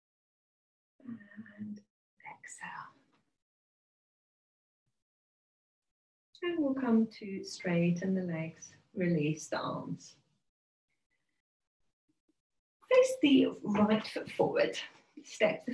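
A woman speaks calmly and clearly into a nearby microphone, giving instructions with pauses.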